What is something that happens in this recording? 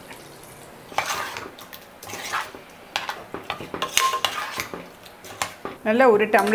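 A spoon stirs and scrapes thick curry in a metal pot.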